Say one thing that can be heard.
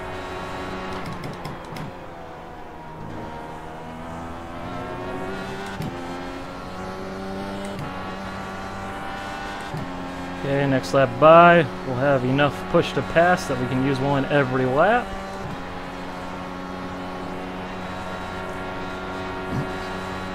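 A racing car engine hums steadily, rising and falling in pitch as it shifts gears.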